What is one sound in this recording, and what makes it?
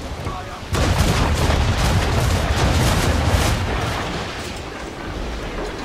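Cannons fire in a booming volley, with loud rumbling blasts.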